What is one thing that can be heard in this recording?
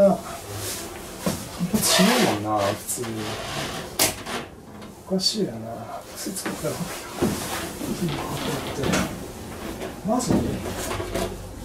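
Footsteps thud on a hollow floor.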